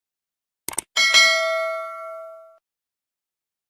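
A bell chimes and rings out.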